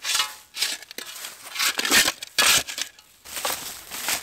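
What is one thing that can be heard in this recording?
A spade scrapes and cuts into soil and roots.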